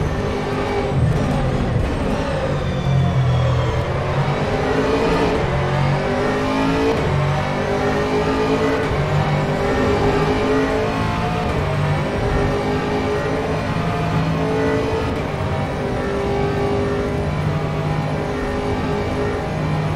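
A racing car engine roars loudly, rising and falling in pitch as it shifts gears.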